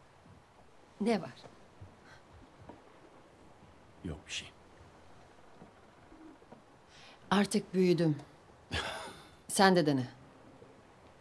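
A young woman speaks quietly and tensely.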